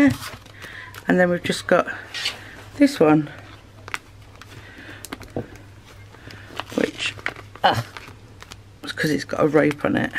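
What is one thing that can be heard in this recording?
A plastic sleeve crinkles as it is handled.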